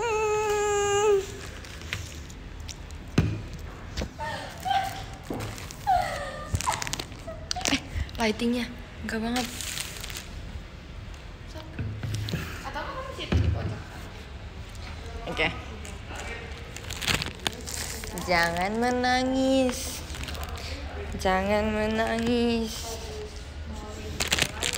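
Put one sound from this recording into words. A young woman talks casually and close by.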